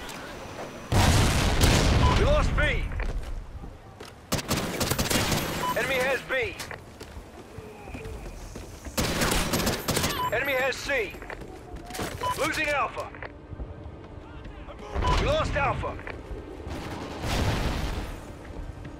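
Gunfire rattles in loud, short bursts.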